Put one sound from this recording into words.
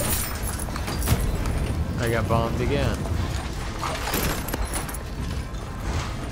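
Coins clink as they scatter and are picked up.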